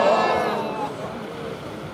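A man shouts loudly, close by.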